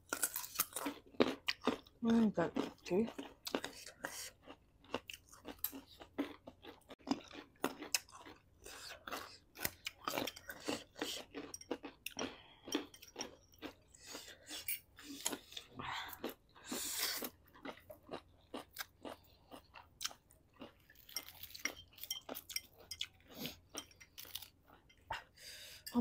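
Several people crunch and chew crispy food close to a microphone.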